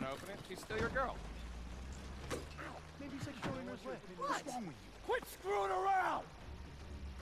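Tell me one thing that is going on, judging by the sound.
Several men talk back and forth close by.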